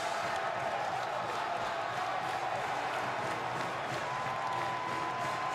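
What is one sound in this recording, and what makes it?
A large crowd cheers and roars loudly in an echoing arena.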